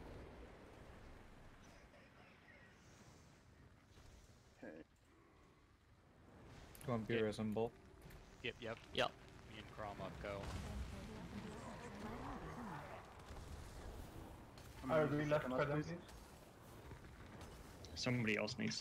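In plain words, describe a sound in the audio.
Magic spells whoosh and crackle in a fast game battle.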